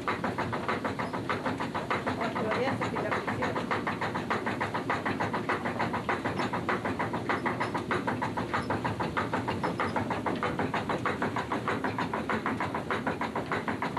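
Wooden flour mill machinery clatters in a fast, even rhythm.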